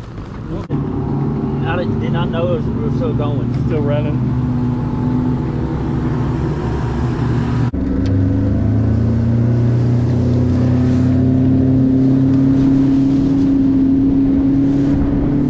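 A boat's outboard motor hums steadily and then revs higher, its pitch slowly rising.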